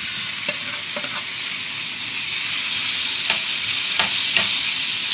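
Food sizzles steadily in a hot pan.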